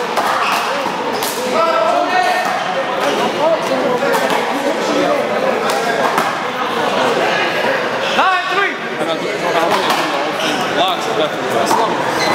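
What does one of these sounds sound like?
Young men shout and call out to each other nearby.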